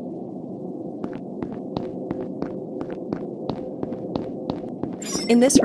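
Quick light footsteps patter across a hard floor.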